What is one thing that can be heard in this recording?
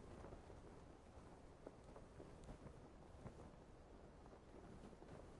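Wind rushes steadily past a parachute in flight.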